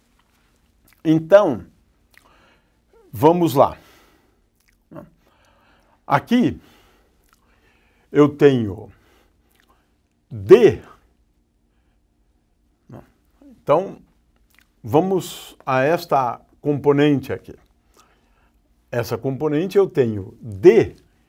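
A middle-aged man lectures in short phrases with pauses, heard through a microphone.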